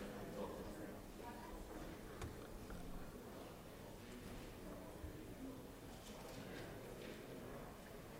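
Men murmur and talk quietly in a large echoing hall.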